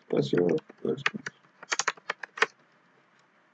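Keyboard keys click in quick bursts.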